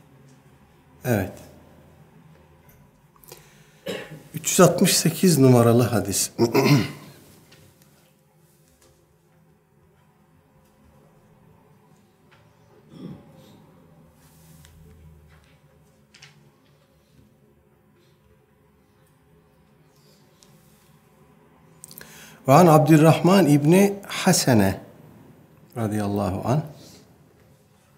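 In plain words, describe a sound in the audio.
A middle-aged man speaks calmly and close to a microphone, with long pauses.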